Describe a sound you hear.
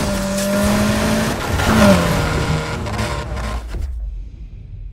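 A car engine roars at high revs as cars race.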